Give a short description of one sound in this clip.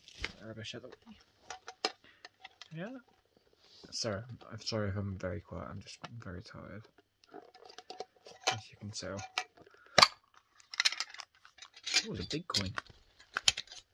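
A plastic tin clicks and rattles in a young man's hands.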